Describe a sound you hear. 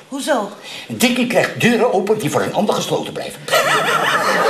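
An elderly man speaks with agitation, close by.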